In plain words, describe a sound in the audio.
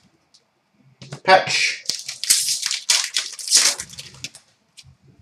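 A foil card pack crinkles and tears open in someone's hands.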